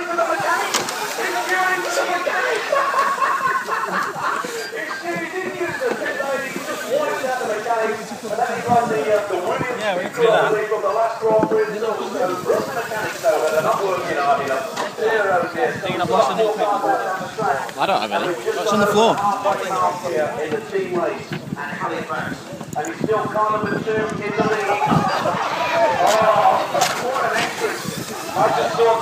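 Several men talk close by, with chatter overlapping throughout.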